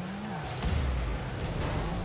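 A rocket boost roars in a rushing burst.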